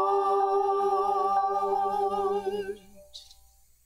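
A small group of singers sings in harmony in an echoing hall.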